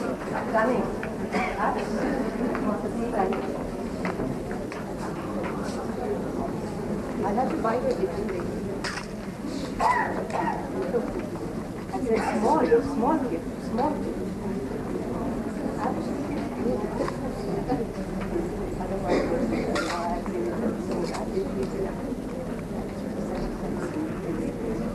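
Several women chat nearby in a lively murmur.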